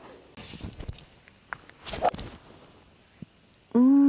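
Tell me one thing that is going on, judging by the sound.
A golf driver strikes a ball with a sharp crack.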